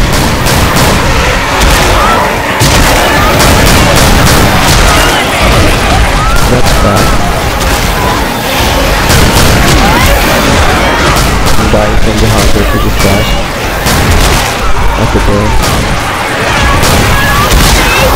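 Zombies snarl and shriek up close.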